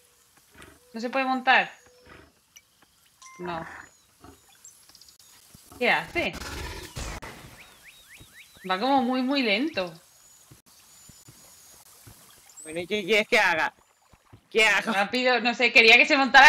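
A young woman talks with animation through a microphone.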